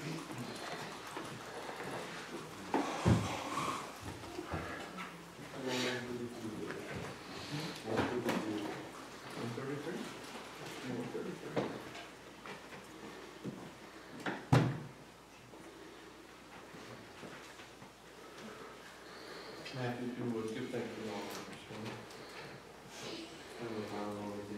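A middle-aged man speaks steadily through a loudspeaker in an echoing room.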